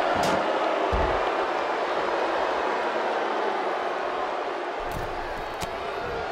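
Bodies thud onto a hard floor.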